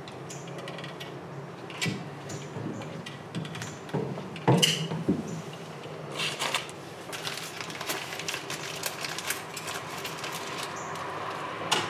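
A caulking gun clicks as its trigger is squeezed.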